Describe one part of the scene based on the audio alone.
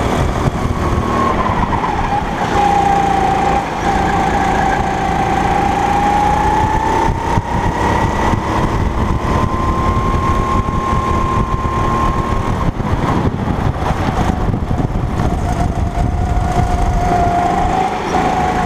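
Wind buffets the microphone with a steady rumble.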